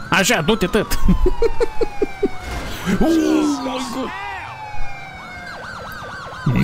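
A police siren wails and yelps close by.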